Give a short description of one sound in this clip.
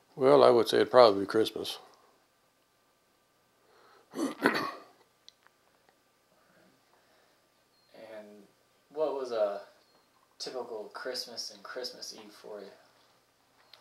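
An elderly man speaks calmly and haltingly into a close microphone, with long pauses.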